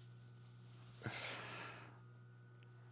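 Fabric rustles softly against a wall.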